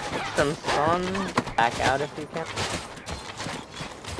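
Armoured footsteps run over hard ground.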